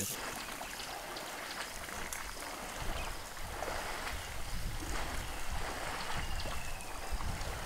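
Water splashes as an elephant wades through a river.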